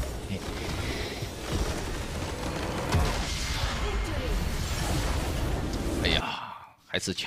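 Loud game effects rumble and crackle with booming blasts.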